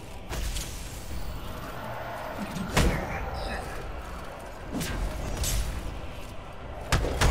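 Game explosions burst and crackle loudly.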